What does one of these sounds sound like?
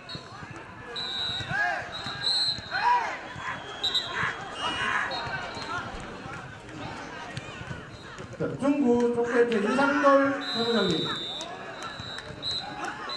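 Young people shout and cheer outdoors.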